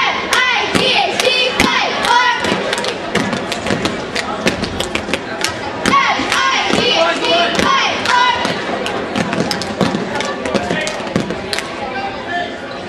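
Feet thump and slap on a mat.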